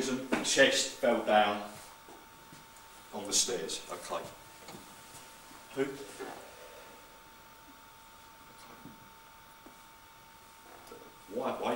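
A man speaks nearby in short bursts.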